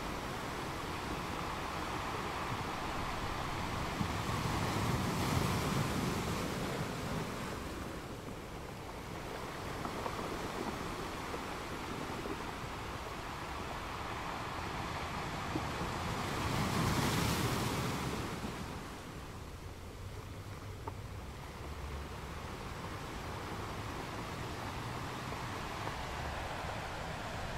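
Ocean waves crash and surge against rocks, swelling and ebbing in a steady roar.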